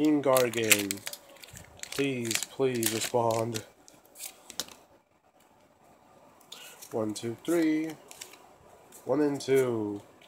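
Trading cards rustle and flick in a hand.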